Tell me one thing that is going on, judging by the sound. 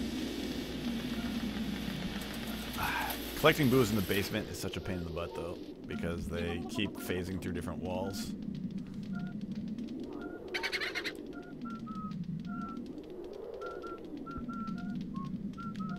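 Soft electronic game music plays throughout.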